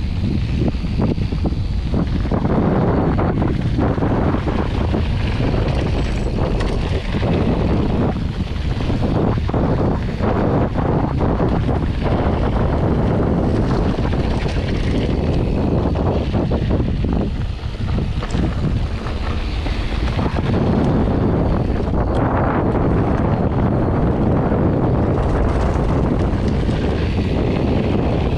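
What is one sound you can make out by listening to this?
Wind buffets loudly past a microphone.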